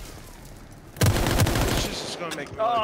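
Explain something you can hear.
Gunfire bursts out in a quick loud volley.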